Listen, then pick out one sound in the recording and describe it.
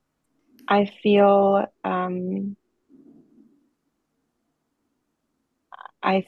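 A woman speaks in short phrases through an online call.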